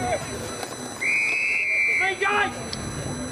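A referee's whistle blows a long, sharp blast.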